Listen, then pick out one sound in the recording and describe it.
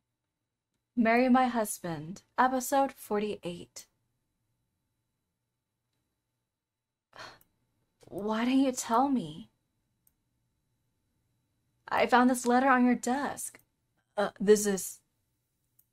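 A young woman reads out lines with animation, close to a microphone.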